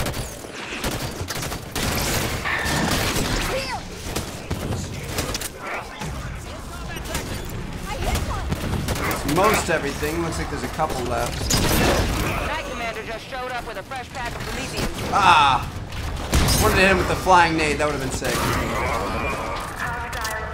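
Video game gunfire rattles and blasts.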